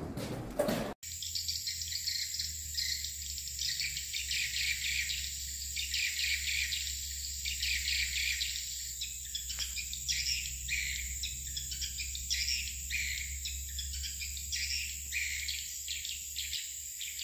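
Swiftlets chirp and twitter.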